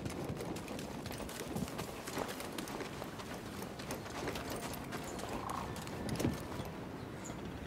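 Footsteps run quickly over wet gravel and rock.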